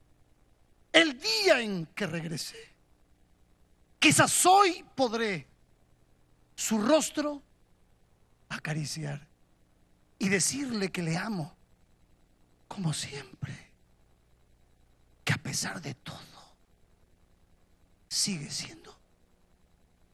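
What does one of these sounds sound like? A middle-aged man preaches passionately into a microphone over loudspeakers, in short bursts with pauses.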